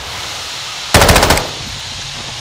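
A grenade explodes with a loud blast.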